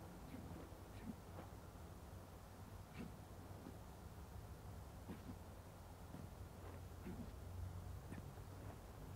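Footsteps tap quickly on a hard rooftop.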